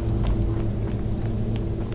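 A torch flame crackles softly.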